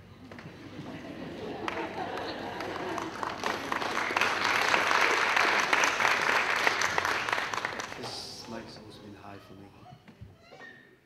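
A large crowd applauds loudly in a hall, then the applause fades.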